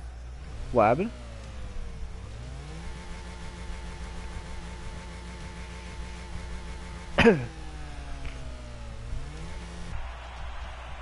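A car engine idles with a low hum that rises and falls in pitch.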